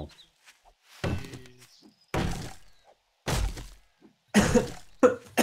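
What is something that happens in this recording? An axe chops into a tree trunk with sharp thuds.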